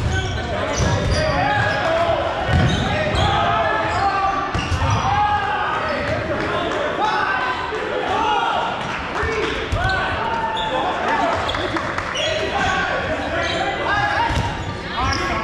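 Young players shout and call out across the hall.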